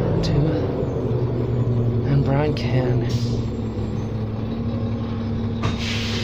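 A bus rattles and creaks as it drives.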